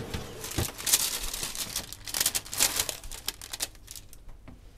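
A metal spatula scrapes and rustles against baking paper on a tray.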